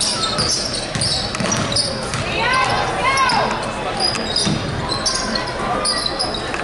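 A crowd murmurs and cheers in an echoing gym.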